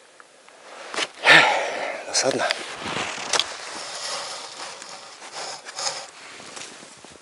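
Snow crunches underfoot as a man moves about.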